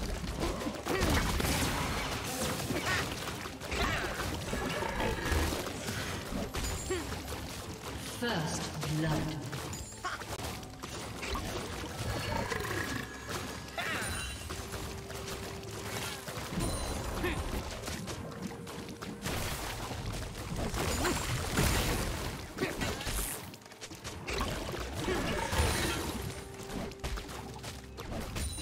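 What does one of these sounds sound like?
Magical blasts, clashing and impact effects from a video game battle sound in quick bursts.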